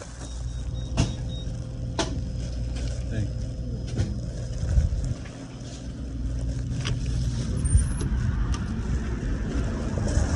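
A plastic bag rustles as it is carried.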